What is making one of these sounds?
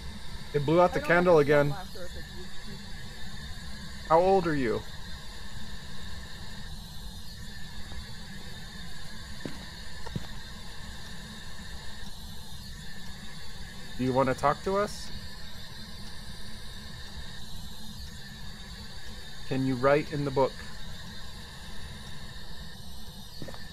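A handheld radio scanner hisses with steady static.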